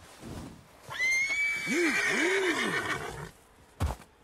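A horse whinnies loudly and shrilly.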